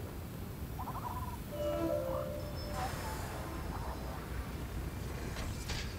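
Wind blows steadily with a low rumble.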